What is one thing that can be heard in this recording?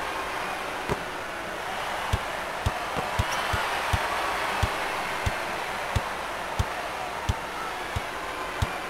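A basketball bounces on a wooden floor in a steady rhythm.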